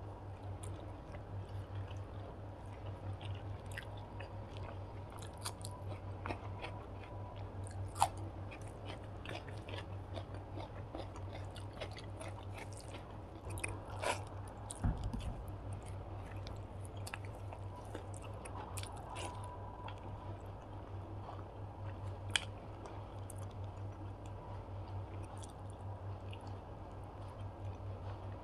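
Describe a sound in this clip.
A person chews food wetly and close up.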